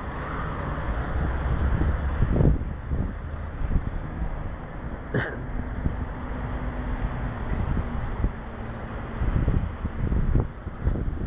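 Wind rumbles over a microphone outdoors.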